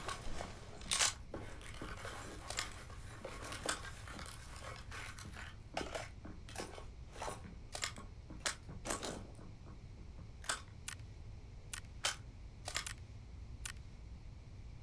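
Short clicks sound as items are moved about.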